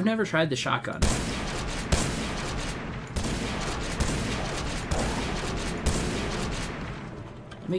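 Shotgun blasts boom loudly, one after another.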